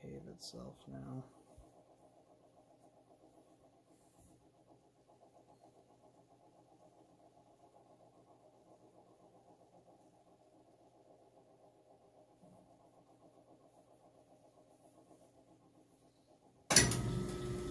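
A washing machine hums quietly.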